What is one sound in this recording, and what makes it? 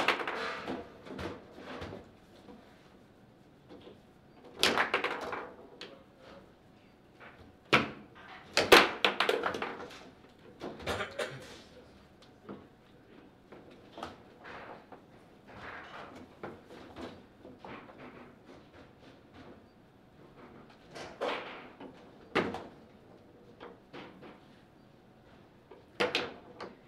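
Foosball rods clack and the ball knocks sharply against the table.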